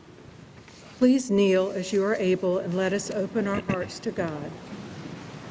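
A congregation speaks in unison.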